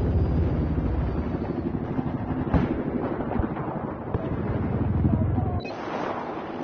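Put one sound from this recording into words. A helicopter's rotor thrums nearby.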